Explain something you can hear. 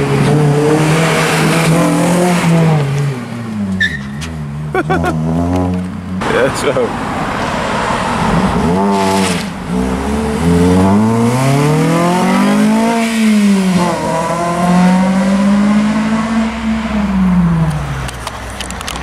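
A car engine revs loudly, its pitch rising and falling as the car speeds past.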